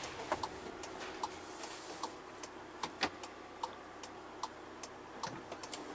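A turn signal ticks steadily inside a vehicle.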